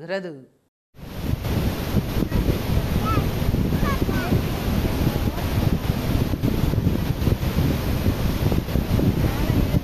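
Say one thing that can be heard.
Water roars and rushes loudly over a dam's spillways.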